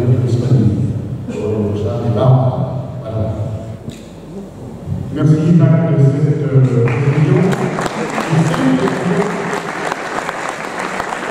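A man speaks calmly over a loudspeaker in a large echoing hall.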